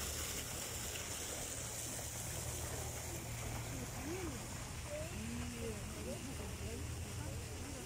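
Young women talk quietly nearby.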